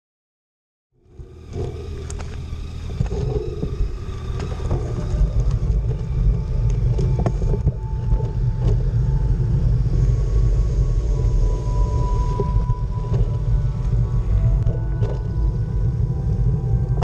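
Wind buffets a helmet microphone while riding.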